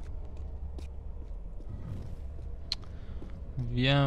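Footsteps run quickly across stone.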